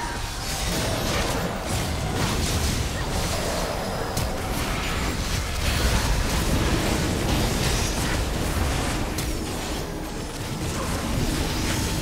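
Magical spells crackle and burst in a hectic battle.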